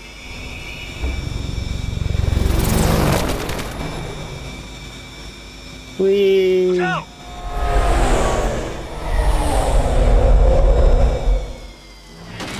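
Wind rushes past a fast-moving vehicle in loud surges.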